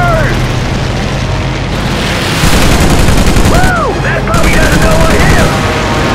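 Aircraft engines drone steadily.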